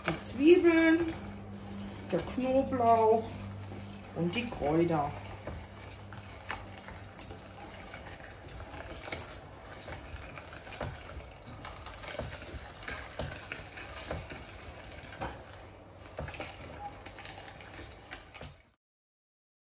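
A hand-cranked mincer grinds and crunches vegetables.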